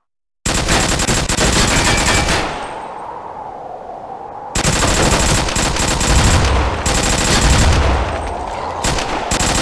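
Cartoon gunshots fire rapidly in a video game.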